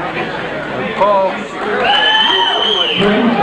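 A crowd cheers and yells loudly.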